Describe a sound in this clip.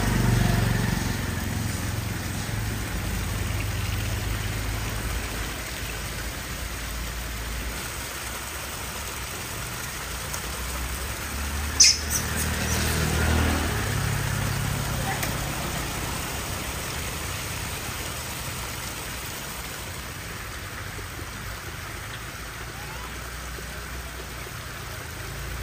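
A monkey munches on fruit close by.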